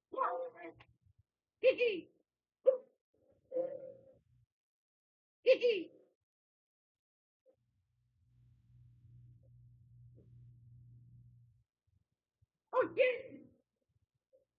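Game characters let out short cartoon voice cries and grunts.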